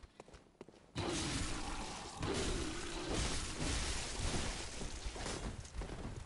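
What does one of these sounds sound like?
Blades slash and strike with heavy thuds.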